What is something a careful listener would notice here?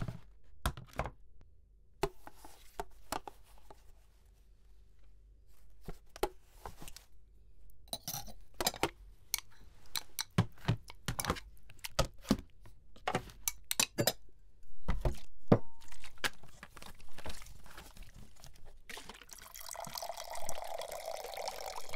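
Plates clink and clatter on a table.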